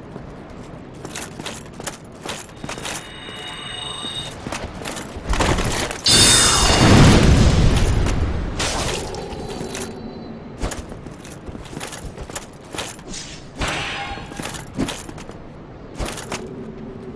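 A sword clashes and strikes in combat.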